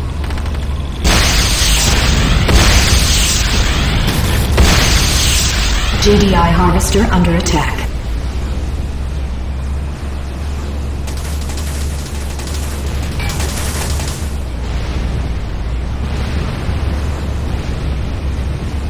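Electric energy crackles and fizzes.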